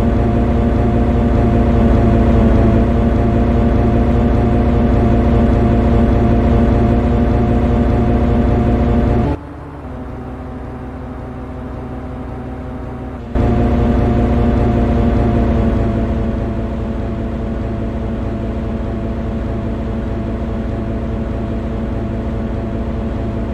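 A locomotive engine drones steadily nearby.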